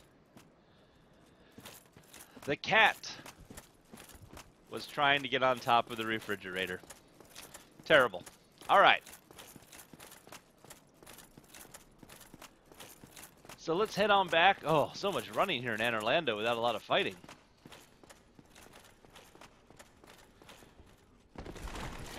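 Armoured footsteps clank quickly on hard ground.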